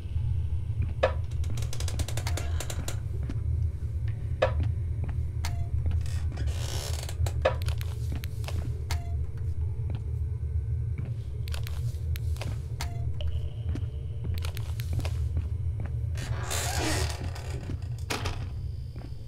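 A wooden door creaks as it swings open.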